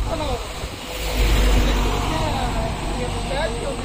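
A truck rumbles as it approaches along the road.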